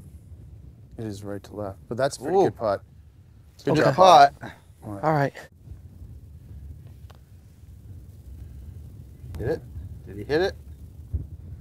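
A man talks excitedly nearby outdoors.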